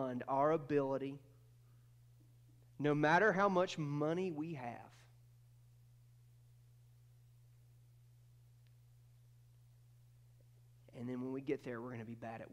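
A man speaks calmly through a microphone, with pauses between phrases.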